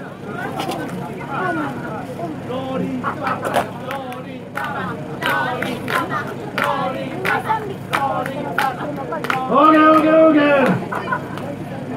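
A group of young men talk and call out to each other nearby, outdoors.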